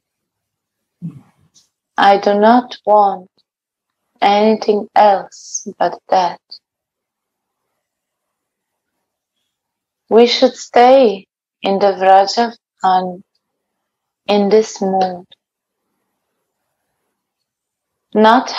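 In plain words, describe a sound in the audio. A young woman chants in a sung tone over an online call.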